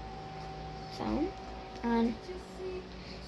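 A young girl speaks briefly and softly close by.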